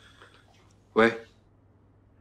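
A man answers a telephone with a short word.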